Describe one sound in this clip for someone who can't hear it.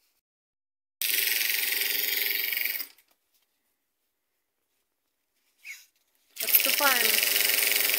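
A sewing machine runs with a fast, steady whirr in short bursts.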